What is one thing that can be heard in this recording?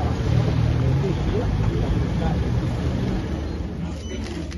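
A car engine rumbles as a vehicle rolls slowly past.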